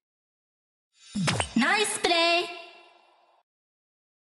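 A longer, sweeping electronic game fanfare sounds.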